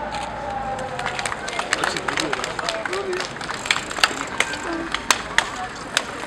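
Cycling shoes and bicycle parts click sharply on pavement.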